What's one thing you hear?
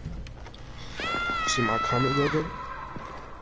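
A young man shouts loudly close to a microphone.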